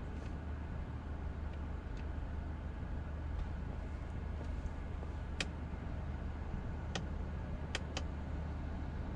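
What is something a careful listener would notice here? A car engine hums low and steady while idling.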